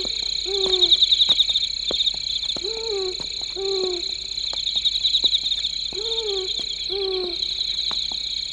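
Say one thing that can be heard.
An owl hoots repeatedly in a soft, low voice.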